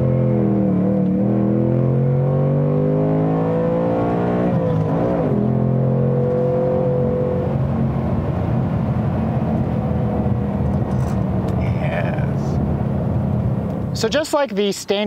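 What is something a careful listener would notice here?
A car engine drones and revs steadily from inside the car.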